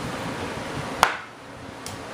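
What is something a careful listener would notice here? A hard plastic shell knocks down onto a table.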